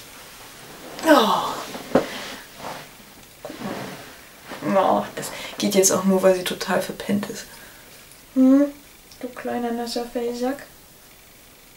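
A young woman speaks softly and playfully close by.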